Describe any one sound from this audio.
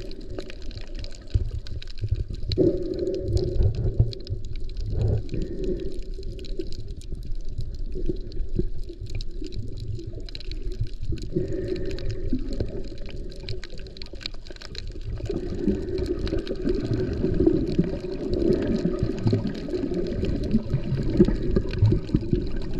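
Water sloshes and rumbles around an underwater microphone.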